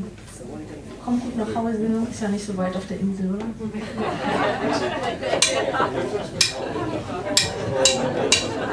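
A young woman sings into a microphone over a loudspeaker.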